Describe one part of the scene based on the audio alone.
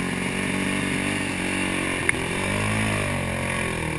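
Water splashes under a dirt bike's wheels.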